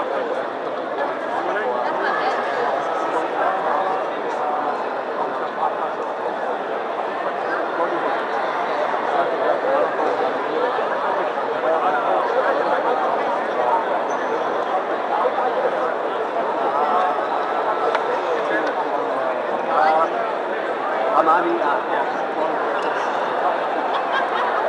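A large crowd chatters steadily in an echoing hall.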